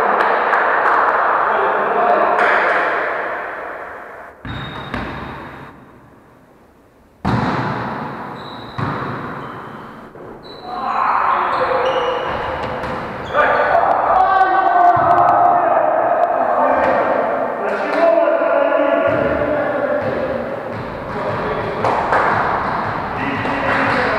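Men call out to each other in an echoing gym.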